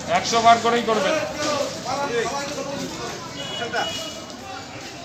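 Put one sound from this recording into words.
A man shouts orders outdoors.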